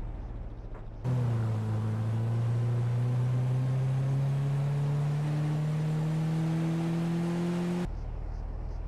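A car engine revs up and climbs steadily in pitch as the car drives off.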